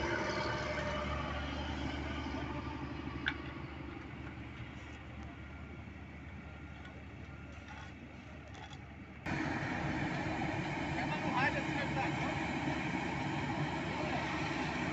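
A diesel dump truck's engine rumbles.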